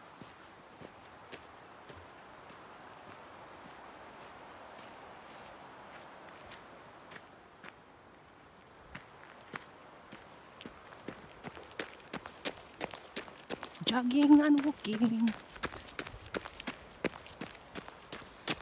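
Footsteps crunch on a gravel road at a steady pace.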